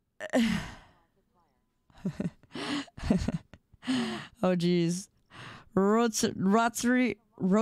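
A young woman talks with animation close to a microphone, her voice rising into high, sing-song tones.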